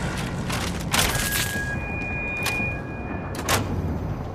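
A switch clicks on a radio set.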